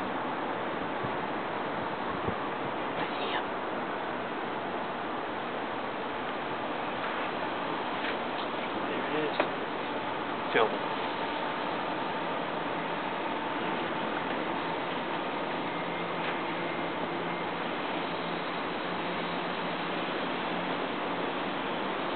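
Traffic hums steadily on a distant road outdoors at night.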